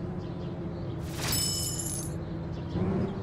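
A bright chime rings out briefly.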